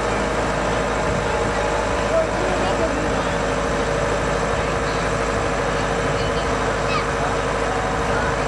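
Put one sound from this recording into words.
A large engine idles with a steady, droning hum close by.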